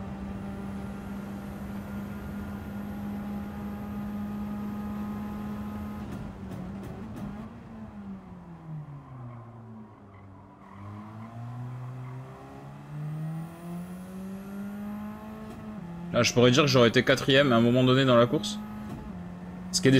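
A racing car engine roars, dropping in pitch as the car slows and then revving back up.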